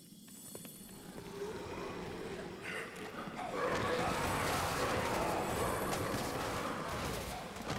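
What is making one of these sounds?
A crowd of zombies groans and moans, growing louder.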